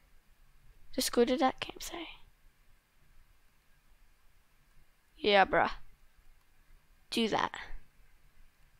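A young girl speaks with animation through a headset microphone in short bursts.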